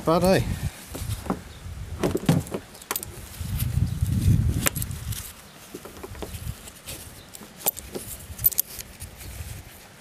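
Pliers click and scrape against metal.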